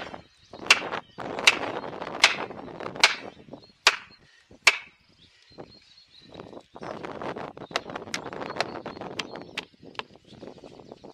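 A hammer strikes a metal felling wedge with sharp ringing blows.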